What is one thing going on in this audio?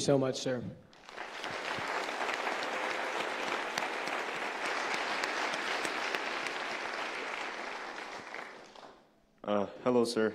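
A large audience applauds in a hall.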